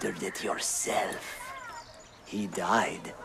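A man speaks calmly and sternly.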